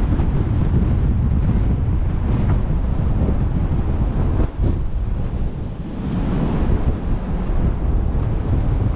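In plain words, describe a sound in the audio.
Strong wind buffets outdoors with a deep, steady rumble.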